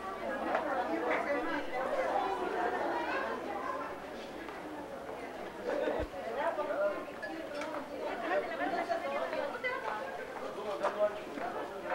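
Several women talk nearby at the same time.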